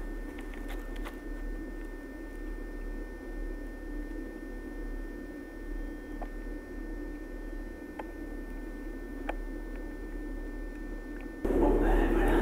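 A metro train rumbles steadily through a tunnel.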